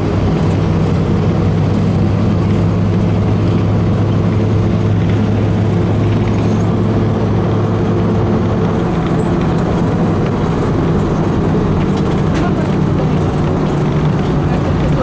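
A vehicle engine hums steadily from inside the cab as it drives along.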